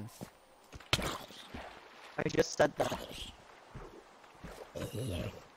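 A sword strikes a zombie with dull thuds.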